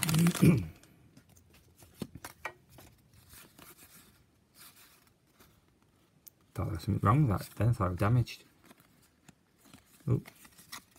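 Trading cards shuffle and flick softly in hands.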